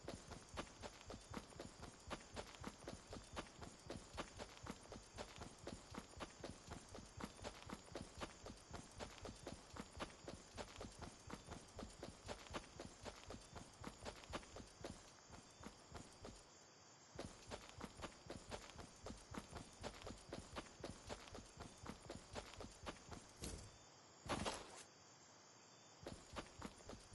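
Quick footsteps thud steadily on grass.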